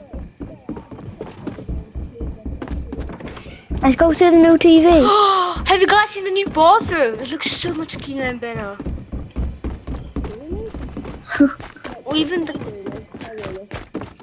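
Quick footsteps thud as a game character runs.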